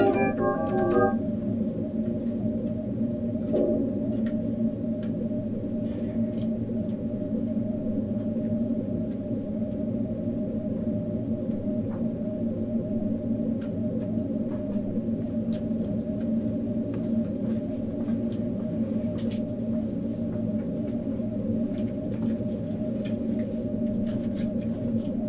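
Small clicks of knobs and keys tap now and then.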